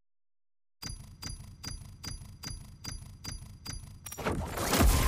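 Game menu chimes tick in quick succession.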